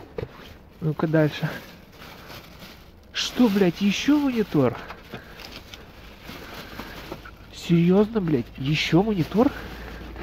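Plastic bags rustle and crinkle as a hand moves them.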